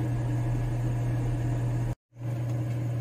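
Broth bubbles and boils in a pot.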